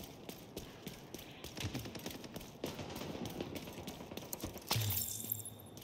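Footsteps thud quickly on pavement.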